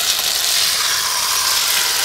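A metal spoon scrapes against a metal pan.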